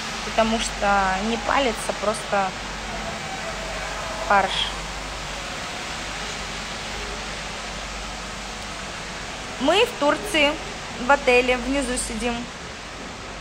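A young woman speaks close to a microphone, calmly and in short bursts.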